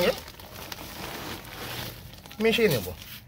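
Soil pours out of a bag with a rustle.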